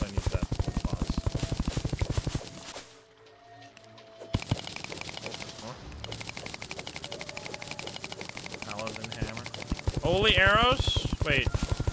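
A video game plays rapid, steady digging sounds.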